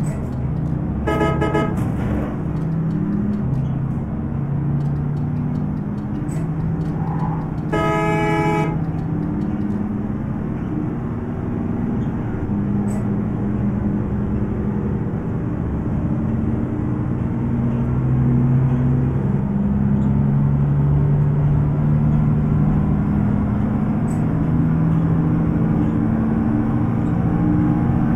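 A bus engine hums and rumbles steadily, rising and falling as it drives.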